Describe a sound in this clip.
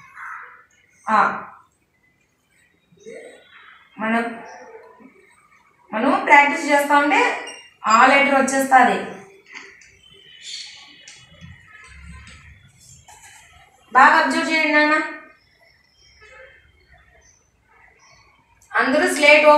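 A woman speaks slowly and clearly, as if teaching.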